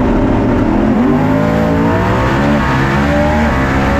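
A race car engine revs up.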